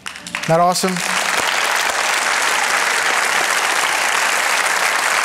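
A large audience claps and cheers.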